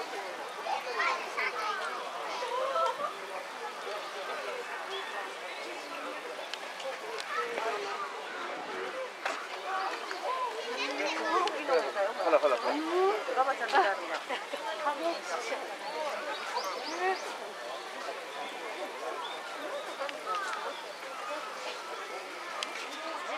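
Water splashes and bubbles into a tank.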